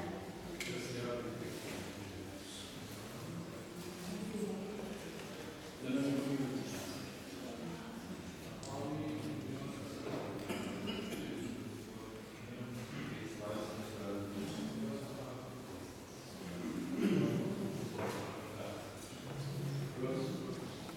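A man chants a prayer in a low, steady voice, echoing in a hall.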